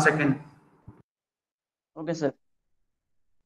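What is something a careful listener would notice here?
A man speaks calmly in short phrases, close up.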